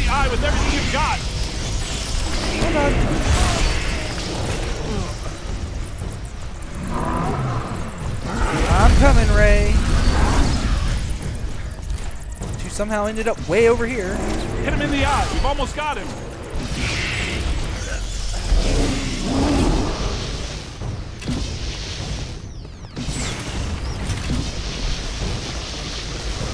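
An energy beam crackles and hums as it fires.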